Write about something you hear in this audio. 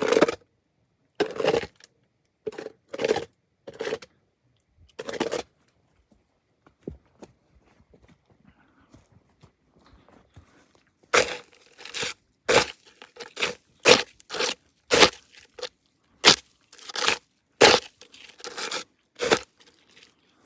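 Footsteps crunch on frozen, stony ground.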